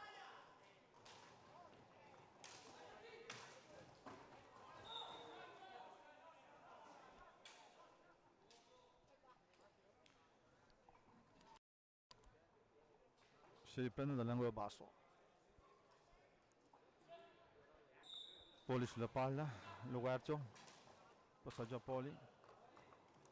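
Hockey sticks clack against a ball and against each other.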